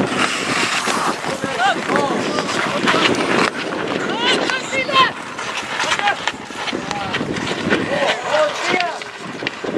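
Ice skates scrape and hiss across the ice.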